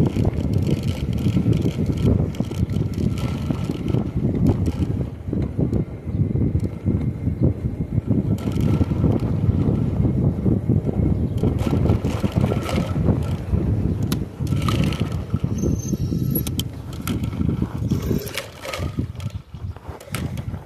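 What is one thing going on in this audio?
Wind rumbles loudly across a microphone.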